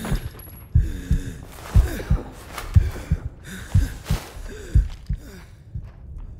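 A rifle fires sharp, booming shots.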